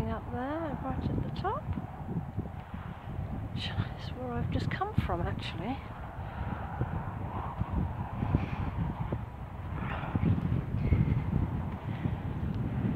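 Wind blusters and rumbles across open ground.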